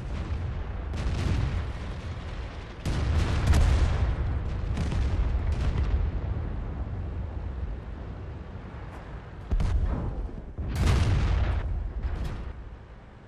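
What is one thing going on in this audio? A tank cannon fires with loud booms.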